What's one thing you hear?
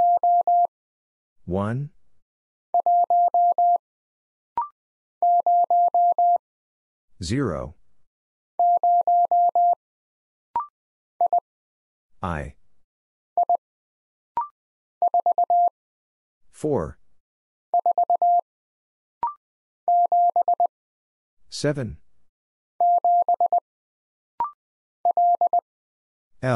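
A telegraph key taps out steady, high beeping bursts of Morse code.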